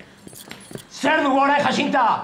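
A middle-aged woman speaks tearfully, close by.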